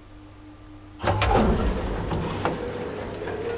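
Elevator doors rumble as they slide open.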